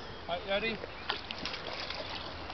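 A kayak paddle dips and splashes in calm water.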